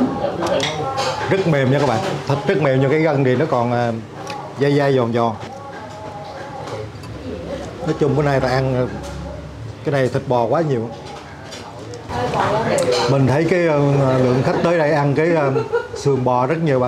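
A middle-aged man talks with animation into a clip-on microphone.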